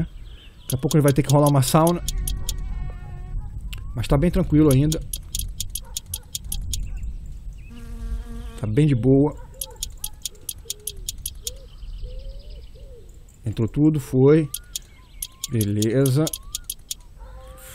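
A ratchet wrench clicks rapidly while tightening bolts.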